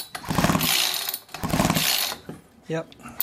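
A small engine cranks and sputters briefly.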